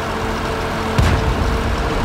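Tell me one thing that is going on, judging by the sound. A tank gun fires with a loud boom.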